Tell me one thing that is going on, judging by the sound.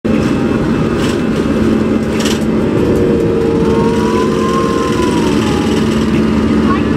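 Aircraft wheels rumble and thump on a runway.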